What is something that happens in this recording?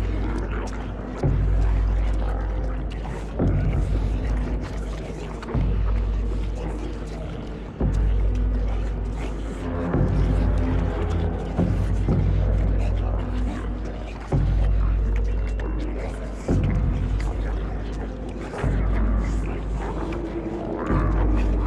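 Heavy snoring rumbles loudly in slow, deep breaths.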